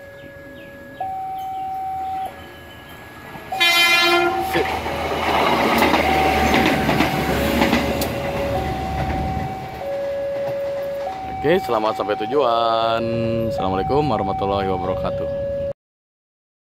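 A railway crossing signal rings in a steady alternating two-note pattern.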